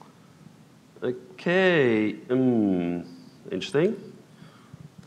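A man speaks into a microphone in short, drawn-out phrases.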